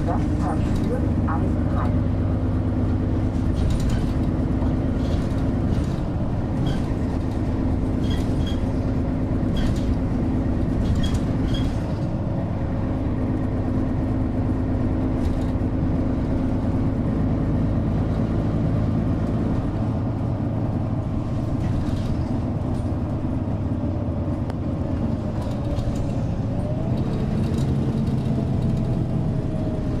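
Rattles and clicks sound from the bus interior as it moves.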